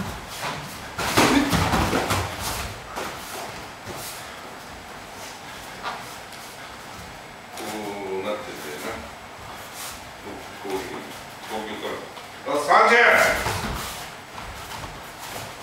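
A man shouts sharply, echoing in a room.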